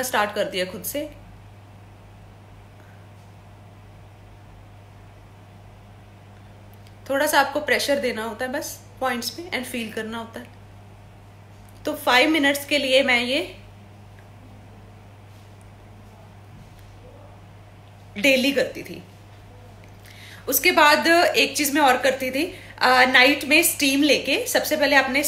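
A young woman speaks calmly and close to the microphone, with pauses.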